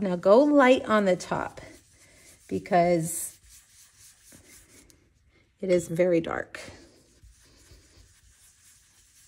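A foam dauber rubs softly against paper.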